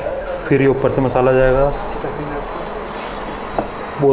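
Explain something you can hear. A metal spoon scrapes food out of a pan.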